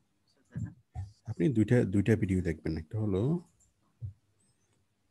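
A man speaks into a close microphone over an online call.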